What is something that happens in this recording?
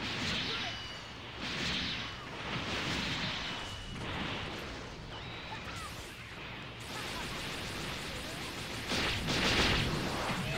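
Energy blasts whoosh and crackle.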